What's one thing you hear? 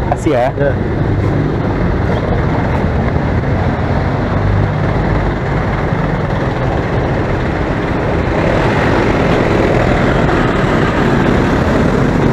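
A bus engine rumbles steadily close by.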